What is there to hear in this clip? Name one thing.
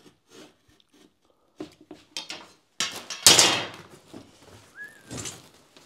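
A utility knife scratches as it scores a drywall sheet.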